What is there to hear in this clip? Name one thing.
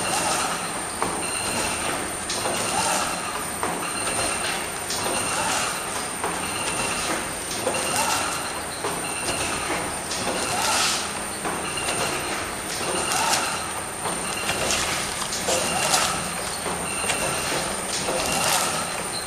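A machine runs with a steady mechanical whir.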